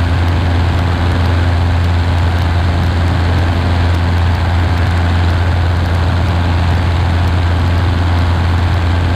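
Wind rushes past the aircraft.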